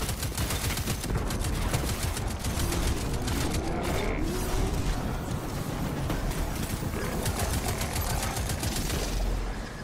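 Explosions boom.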